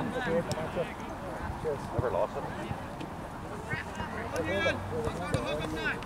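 Young players shout to each other in the distance outdoors.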